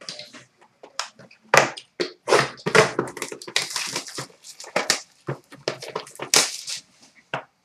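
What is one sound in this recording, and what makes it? Foil card packs crinkle as hands handle them.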